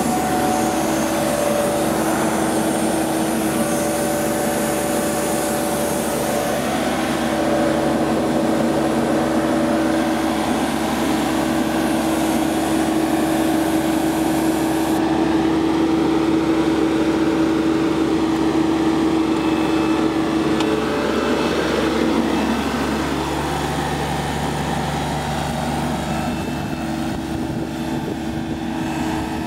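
A mower engine runs steadily close by.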